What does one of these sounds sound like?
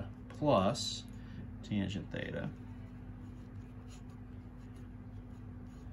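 A marker squeaks and scratches softly on paper.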